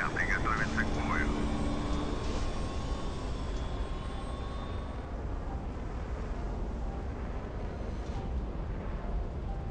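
A jet engine roars steadily with a deep rumble.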